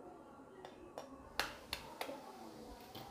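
A knife taps sharply against an eggshell.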